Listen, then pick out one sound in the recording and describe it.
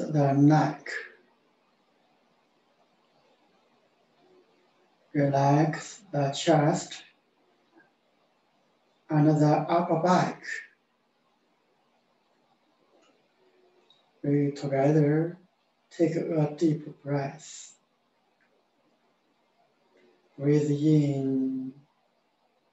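A middle-aged man speaks calmly in short phrases with pauses, heard up close through a microphone.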